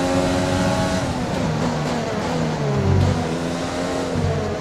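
A racing car engine drops in pitch with quick downshifts as it brakes.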